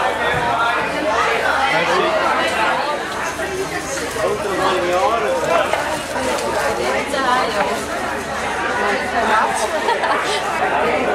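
Several women and girls chatter and talk at once.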